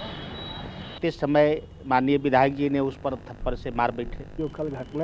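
A middle-aged man speaks into microphones close by, with emphasis.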